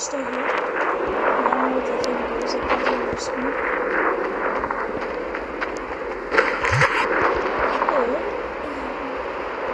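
Footsteps crunch quickly over rocky ground.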